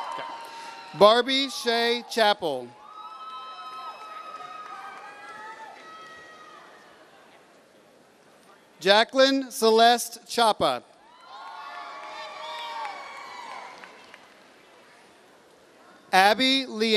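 A man reads out names through a loudspeaker in a large echoing hall.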